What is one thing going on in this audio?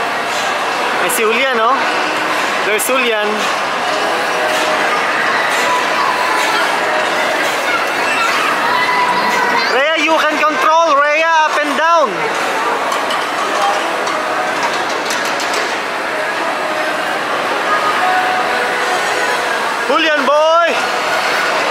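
Young riders squeal and shriek with delight.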